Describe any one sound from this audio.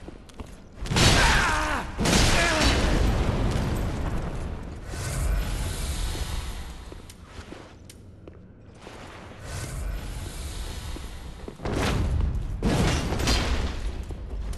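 Metal weapons clash and ring sharply.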